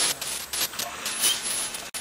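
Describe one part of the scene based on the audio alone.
An electric drill whirs into a wall.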